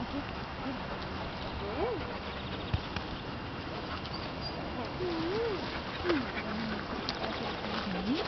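A young woman talks softly and warmly close by.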